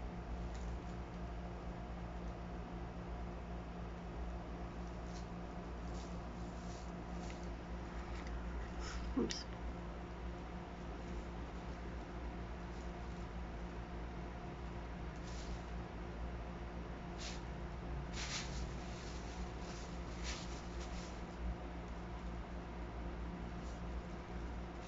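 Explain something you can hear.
A cat shifts inside a plastic bag, which crinkles and rustles.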